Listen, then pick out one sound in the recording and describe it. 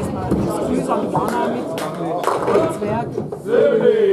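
Pins clatter as a ball knocks them down.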